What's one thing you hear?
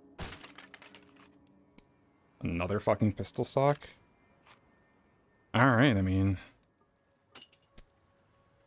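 Metal gun parts click and clack sharply.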